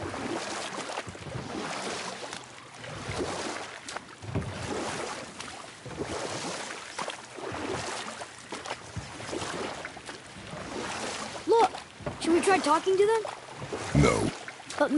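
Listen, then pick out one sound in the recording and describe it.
Oars splash and pull through water beside a wooden rowing boat.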